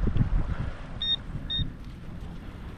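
A metal detector beeps twice.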